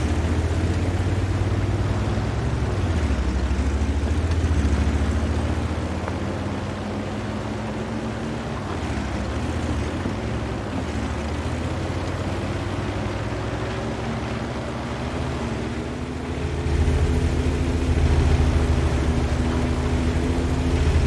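Tank tracks clatter over the ground.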